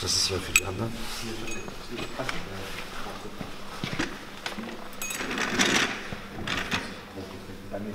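Metal tools click and clink against an engine block.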